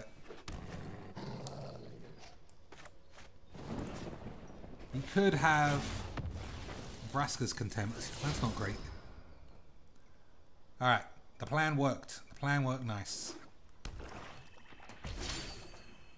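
A magical whoosh and chime sound as a spell is cast.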